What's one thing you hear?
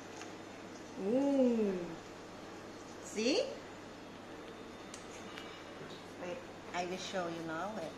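A young woman speaks nearby in a lively, playful voice.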